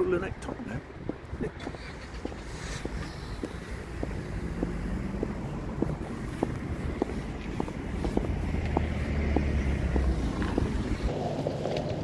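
Footsteps tap on pavement at a steady walking pace.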